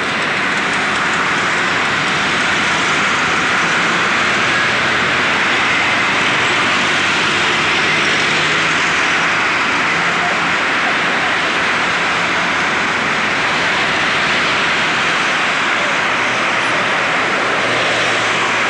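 Car traffic hums and hisses steadily along a road.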